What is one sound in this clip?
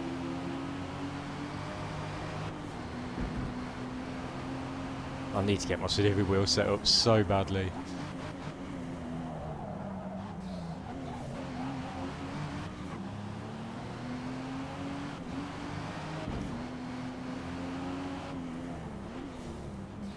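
A car engine hums steadily, rising and falling in pitch as the car speeds up and slows down.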